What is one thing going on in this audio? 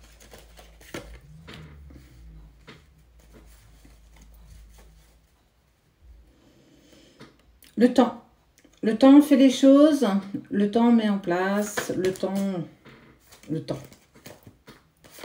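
Tarot cards shuffle and slap softly in a woman's hands.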